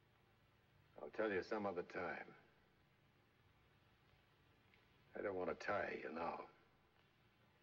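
An older man speaks calmly in a low voice, close by.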